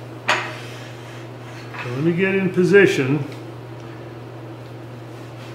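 A lathe motor hums steadily.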